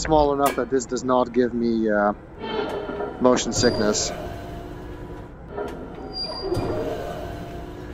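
A lift rumbles steadily as it moves along a shaft.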